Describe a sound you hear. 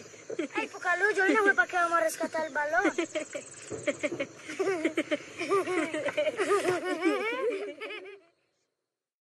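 A young boy talks excitedly up close.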